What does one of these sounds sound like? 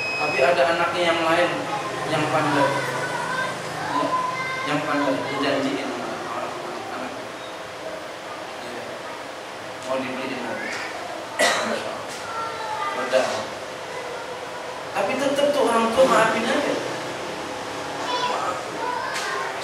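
A man speaks with animation into a microphone, heard through a loudspeaker in an echoing room.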